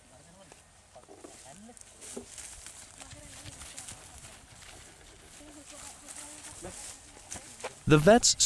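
Several men talk quietly in the distance outdoors.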